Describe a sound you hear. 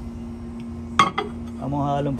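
A ceramic mug clunks down on a glass plate.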